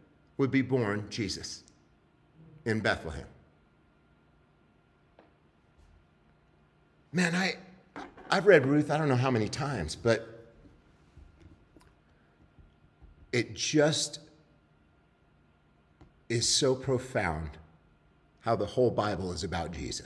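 A man speaks calmly into a microphone, reading out with pauses, in a hall with some echo.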